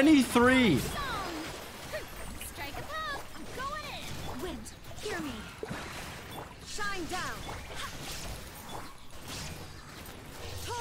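Video game combat effects whoosh and clash.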